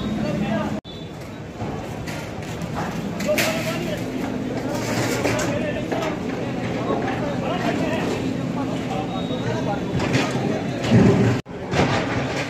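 Sheet metal clatters and scrapes as men pull it loose.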